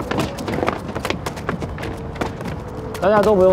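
Footsteps shuffle on pavement as a group walks.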